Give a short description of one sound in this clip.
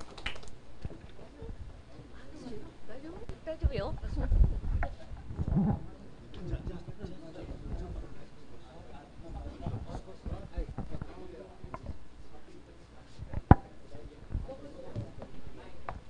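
A crowd of adults chatters and murmurs.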